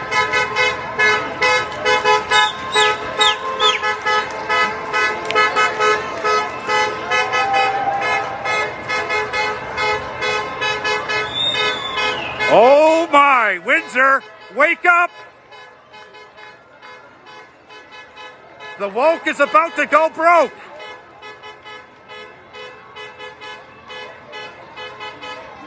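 A large crowd of people chants and cheers outdoors.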